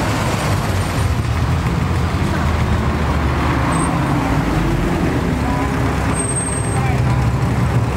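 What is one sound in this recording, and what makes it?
A Ferrari Testarossa flat-12 engine rumbles as the car rolls past close by.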